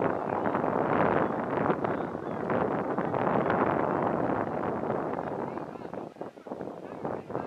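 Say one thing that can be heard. Wind blows loudly across an open field.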